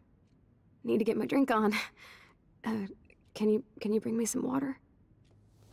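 A young woman speaks softly and weakly, close by.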